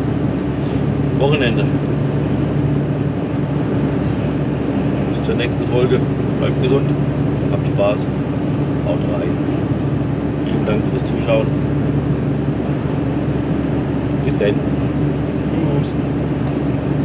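A middle-aged man talks casually nearby.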